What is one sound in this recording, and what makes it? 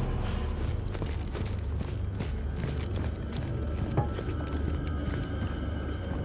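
Heavy boots clank on a metal walkway.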